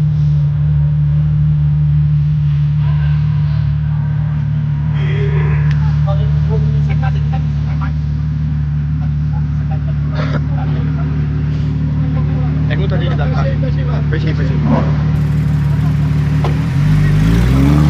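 A car engine idles with a deep steady rumble.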